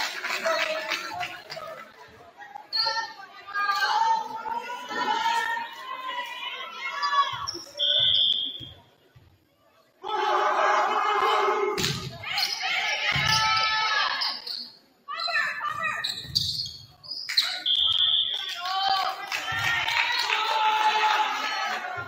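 Players shout and call out across an echoing gym.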